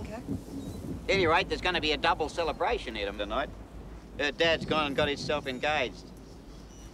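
An older man speaks with feeling nearby.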